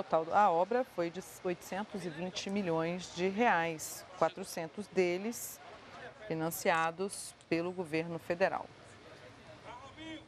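A crowd murmurs and chatters far off.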